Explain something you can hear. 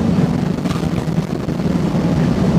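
A train's doors slide shut.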